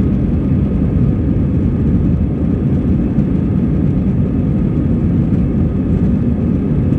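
A jet's engines roar with a steady low rumble as the plane rolls along the ground.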